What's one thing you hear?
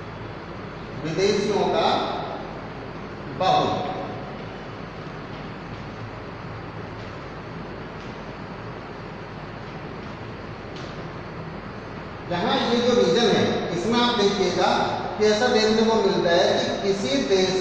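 A man speaks loudly, lecturing.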